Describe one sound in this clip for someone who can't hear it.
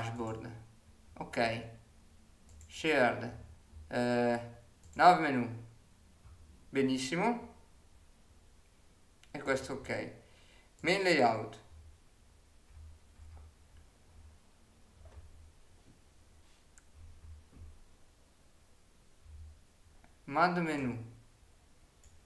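A young man speaks calmly and close to a microphone, in short phrases with pauses.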